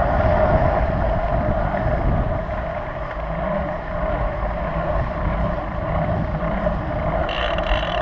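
Tyres rumble over cobblestones.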